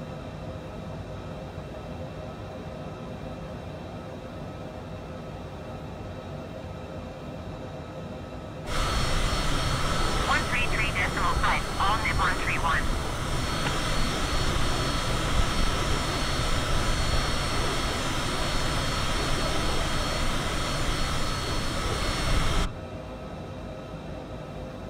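Jet engines hum steadily, muffled as if heard from inside a cockpit.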